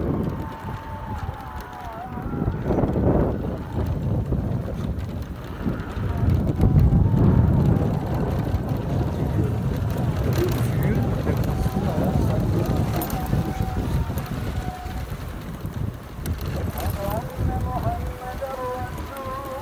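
A motorcycle engine hums and whines as it rides along.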